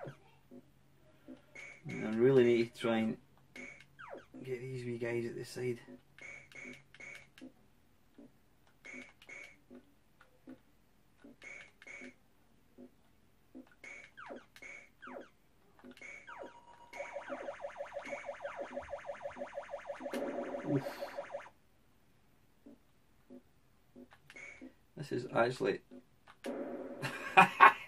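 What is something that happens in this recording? An arcade game's marching beeps pulse steadily.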